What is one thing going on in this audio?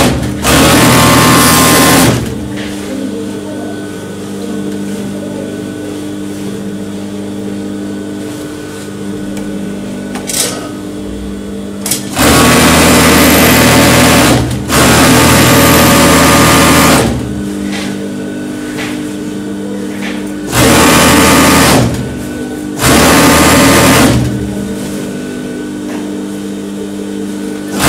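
A sewing machine motor hums steadily between bursts.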